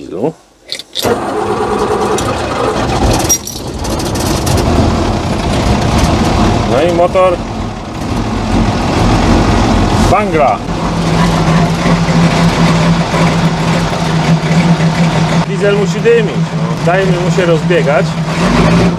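A diesel engine starts and rumbles steadily at idle.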